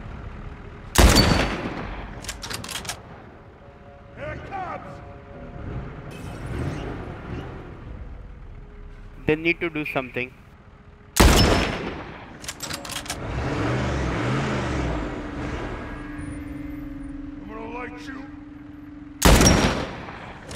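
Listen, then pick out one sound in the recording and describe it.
A rifle fires loud single shots that echo.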